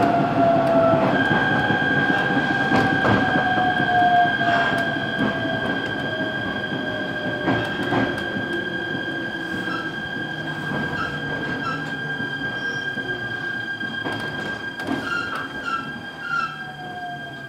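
A train rumbles along the tracks from inside a carriage.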